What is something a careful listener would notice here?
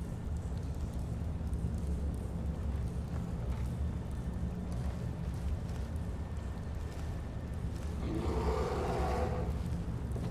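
Footsteps rustle through leaves and undergrowth.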